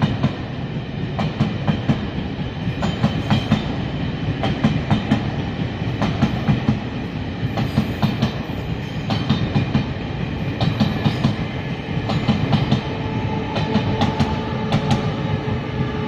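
Train wheels clack rhythmically over rail joints.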